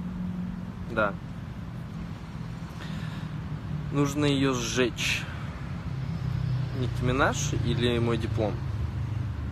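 A young man talks calmly and close by, outdoors.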